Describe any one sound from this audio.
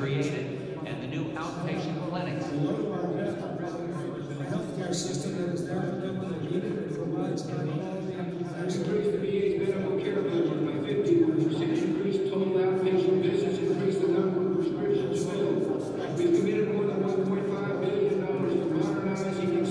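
A grand piano plays a flowing melody in a large, echoing hall.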